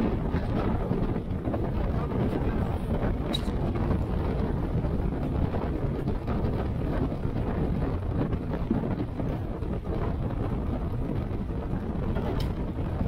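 Wind rushes loudly past the listener.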